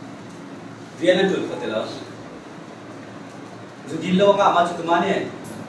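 A man speaks calmly in short bursts, with pauses, in a room with slight echo.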